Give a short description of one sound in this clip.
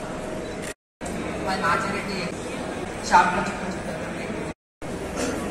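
A woman speaks through a loudspeaker in an echoing hall.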